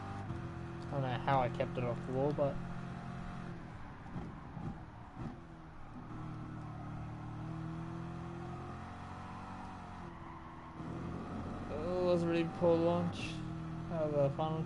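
A race car engine roars steadily, rising and falling in pitch as the car speeds up and slows for corners.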